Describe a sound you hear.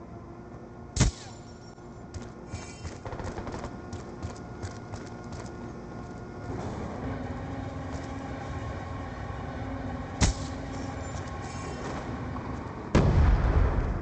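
A rifle fires with loud sharp cracks.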